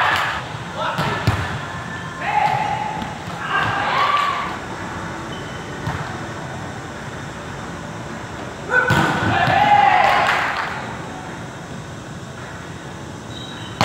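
A volleyball thumps against hands and arms.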